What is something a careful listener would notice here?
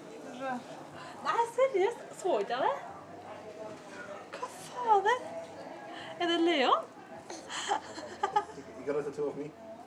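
A young woman speaks in a high, cooing voice close by.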